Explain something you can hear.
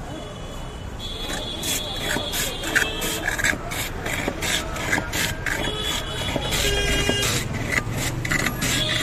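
Ice scrapes and crunches as a block of ice is shaved.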